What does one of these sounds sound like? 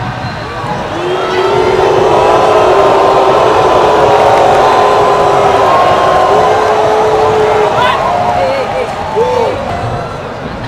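A large crowd sings a chant together in a stadium.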